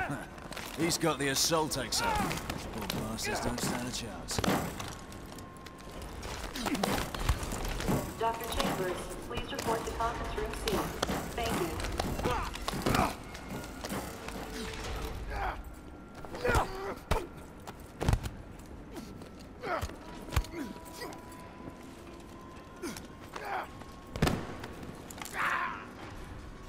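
Punches and kicks thud in a brawl.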